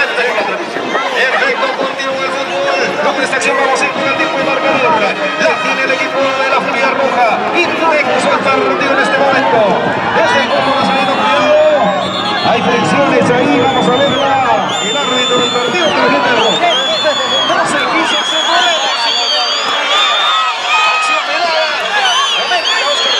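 A large crowd of spectators shouts and cheers outdoors.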